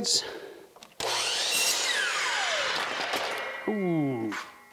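A power miter saw whirs and cuts through wood.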